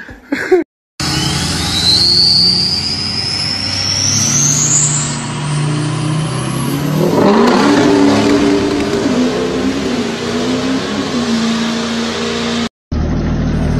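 A pickup truck engine revs hard and roars as the truck drives off.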